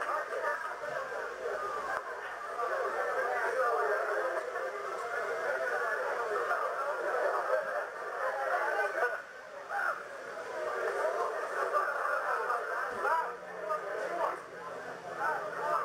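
A crowd of men and women cheers and shouts excitedly in a large room.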